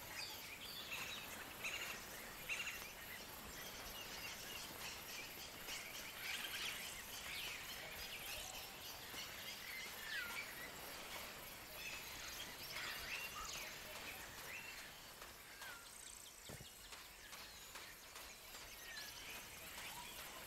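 Birds chirp and twitter all around.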